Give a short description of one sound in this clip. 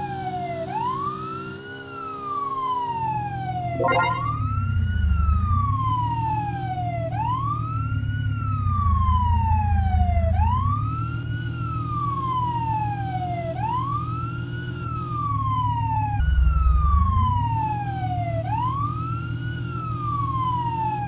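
A siren wails up and down over and over.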